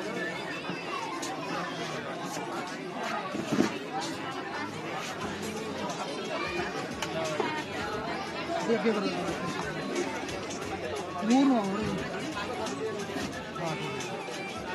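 Several men and women chatter and talk over one another nearby.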